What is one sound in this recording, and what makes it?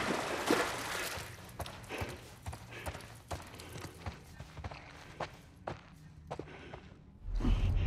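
Footsteps crunch on a littered floor.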